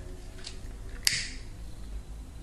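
A lighter clicks as it is struck.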